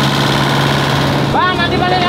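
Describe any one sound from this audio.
An excavator engine rumbles.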